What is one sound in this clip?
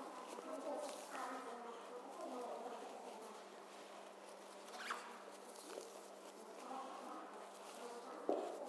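Nylon fabric rustles as it is folded.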